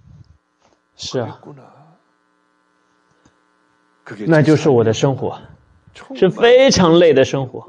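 A middle-aged man speaks with feeling into a microphone, pausing between phrases.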